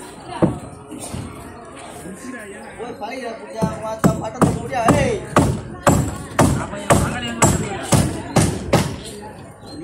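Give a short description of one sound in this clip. Footsteps tread on steel reinforcing bars.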